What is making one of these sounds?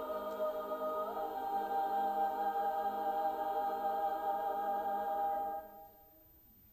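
A choir sings a sustained chord in a large echoing hall.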